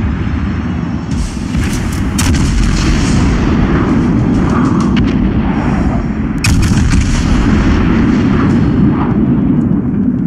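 Shells explode with heavy booms as they splash into water.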